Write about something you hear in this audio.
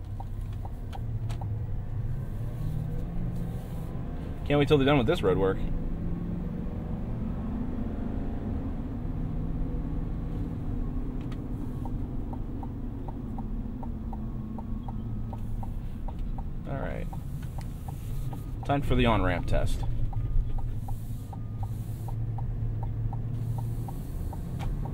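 An engine hums steadily inside a moving vehicle.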